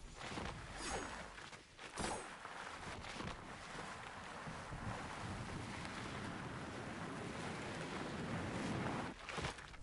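Boots hiss over snow while sliding downhill.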